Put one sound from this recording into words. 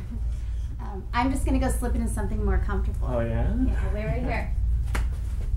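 A woman speaks playfully up close.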